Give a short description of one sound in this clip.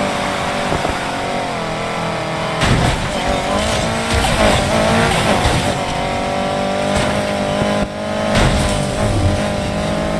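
Car tyres squeal as a car drifts through a turn.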